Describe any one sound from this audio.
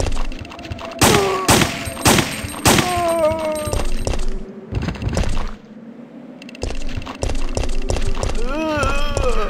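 A creature groans and moans.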